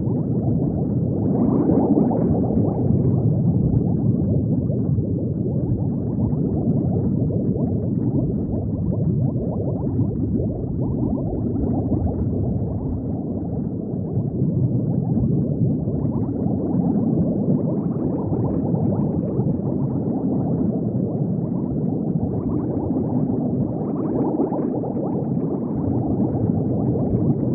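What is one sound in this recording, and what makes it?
Bubbles rise and gurgle steadily under water.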